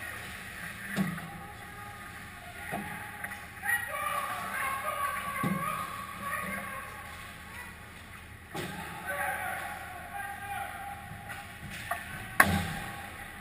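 Hockey sticks and pucks knock sharply, echoing in a large hall.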